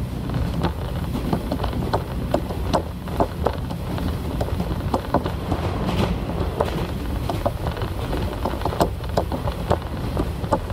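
Train wheels clatter and click over the rail joints.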